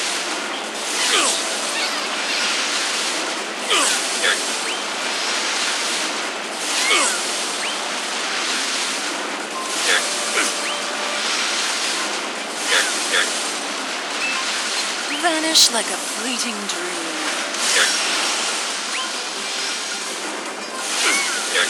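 Explosions boom again and again as magic attacks hit.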